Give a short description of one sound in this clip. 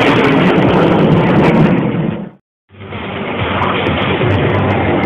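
Jet aircraft roar loudly overhead.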